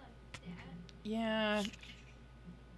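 An elderly woman speaks briefly and calmly into a microphone.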